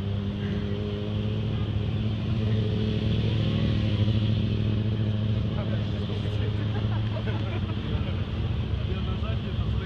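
A motorcycle engine runs loudly nearby with a steady rumble.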